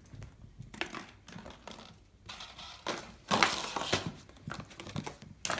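A small dog's paws patter on a wooden floor.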